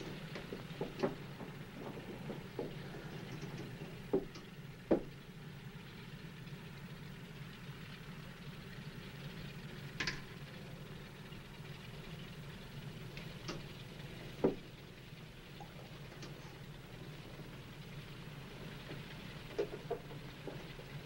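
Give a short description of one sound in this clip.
Switches click sharply now and then.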